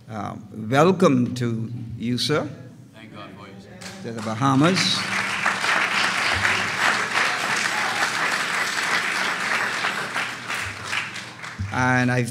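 A middle-aged man preaches with feeling into a microphone in an echoing hall.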